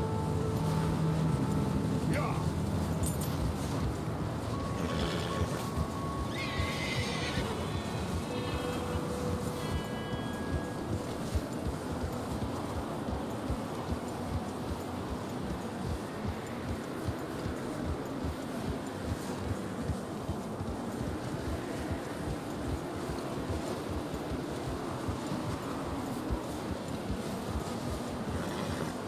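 Horse hooves crunch steadily through deep snow.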